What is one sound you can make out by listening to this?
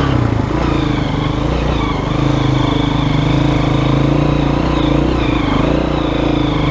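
A dirt bike engine putters and revs up close.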